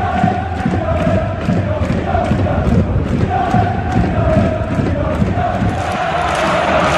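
A crowd of fans chants loudly in unison outdoors.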